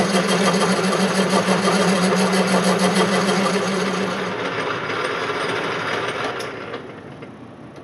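A metal lathe spins and cuts with a loud, rough whirring that fades away.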